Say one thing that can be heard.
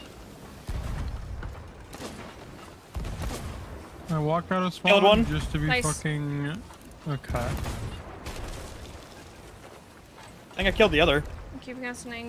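Cannon shots boom in heavy, low thuds.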